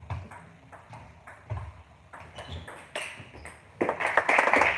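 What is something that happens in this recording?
A table tennis ball clicks back and forth off paddles and the table in a large echoing hall.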